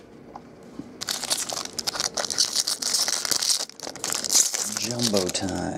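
Foil wrappers crinkle and rustle as they are torn open.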